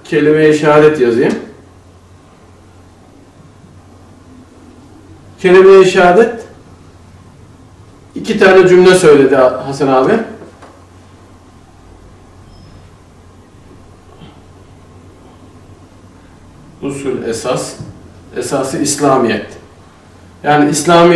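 A man speaks calmly in short phrases with long pauses.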